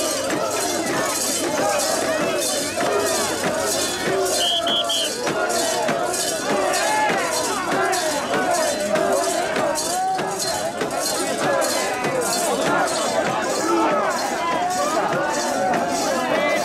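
Many voices shout and call out together.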